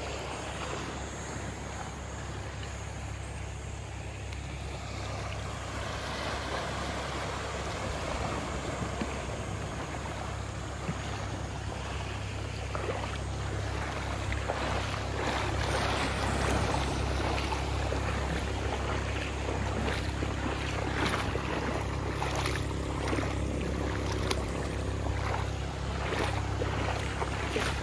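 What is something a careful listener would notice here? Small waves wash and splash gently over shallow rocks.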